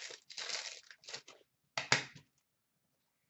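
Plastic wrapping crinkles in a hand.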